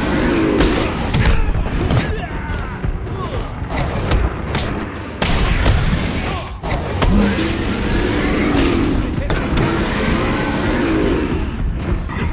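Men grunt and groan as they are struck.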